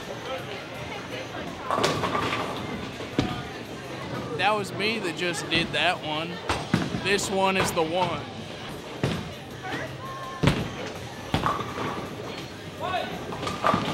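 A bowling ball rolls down a wooden lane.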